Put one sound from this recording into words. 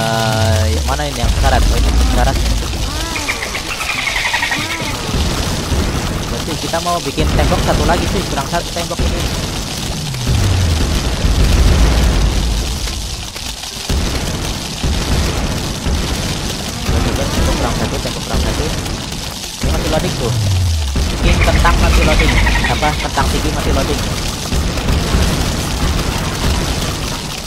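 Game shooters pop and fire rapidly and without a break.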